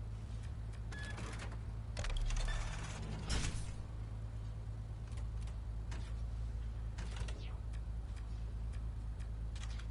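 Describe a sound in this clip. Soft electronic menu clicks sound as selections change.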